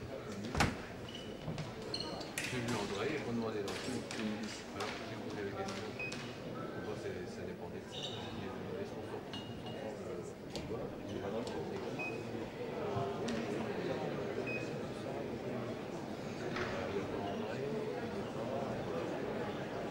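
Fencers' shoes squeak and thud on the floor.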